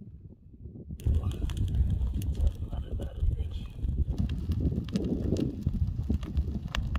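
Burning brush crackles and pops.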